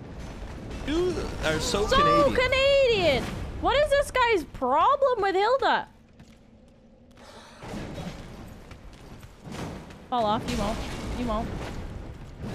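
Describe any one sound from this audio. A young woman speaks animatedly and in a sing-song way, close to a microphone.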